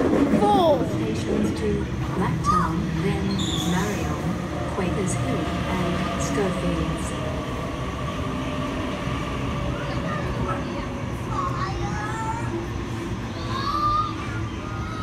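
Train wheels squeal on the rails.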